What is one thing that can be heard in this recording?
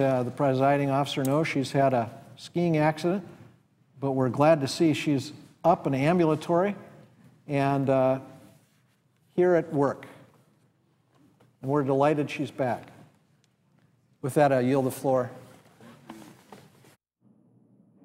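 A middle-aged man speaks firmly into a microphone in a large echoing hall.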